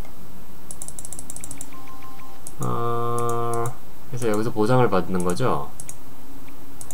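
Soft interface clicks sound as menu buttons are tapped.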